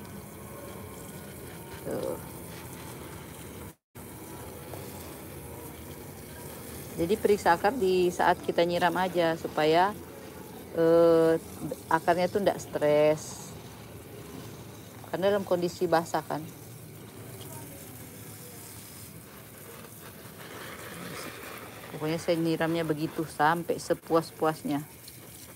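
A hose nozzle sprays water onto leaves with a soft hiss.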